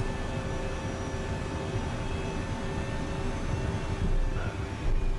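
An aircraft engine hums steadily from inside the cabin.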